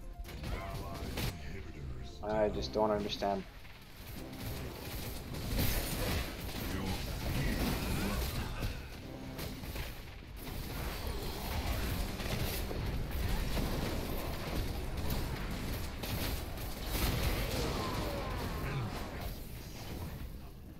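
Magic blasts and clashing weapon blows ring out in a busy fight.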